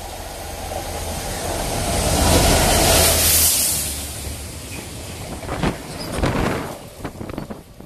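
A Class 66 diesel locomotive throbs past at speed.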